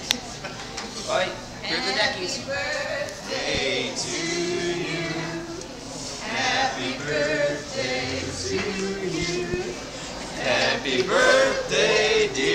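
A group of young men and women sing together nearby.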